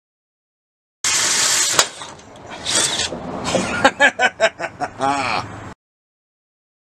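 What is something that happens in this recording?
A power drill whirs as it bores into metal.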